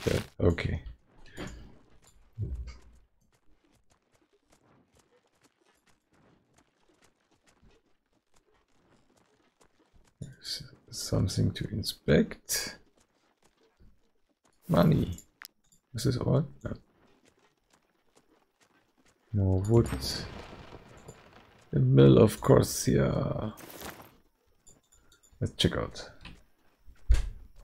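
A man talks casually into a close microphone, in bursts with pauses.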